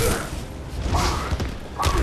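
Fire blasts out with a roar.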